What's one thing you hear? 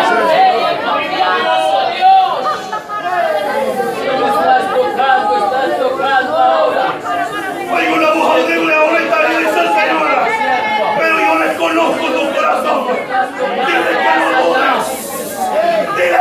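A crowd of men and women pray aloud all at once in an echoing room.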